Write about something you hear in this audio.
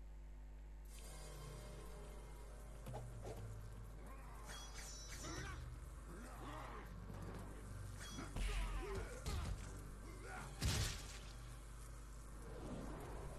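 Video game sound effects clatter and crash loudly.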